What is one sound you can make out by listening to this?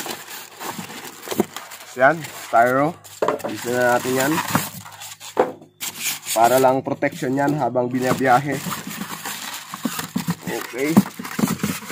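Cardboard rustles and scrapes.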